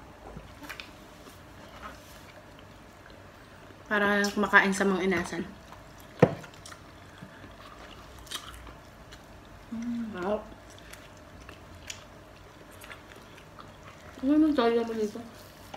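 Women chew and smack their lips while eating.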